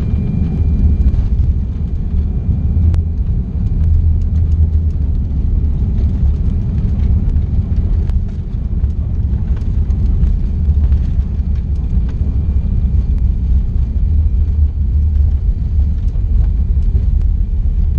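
Aircraft wheels rumble and thump on a runway.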